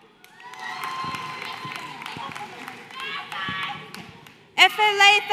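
A crowd cheers and whoops in a large echoing hall.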